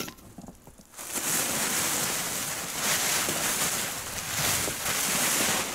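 A plastic tarp crinkles and rustles as it is pulled.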